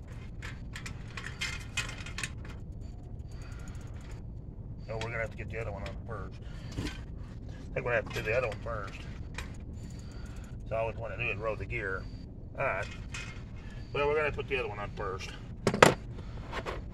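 Metal bicycle parts click and rattle.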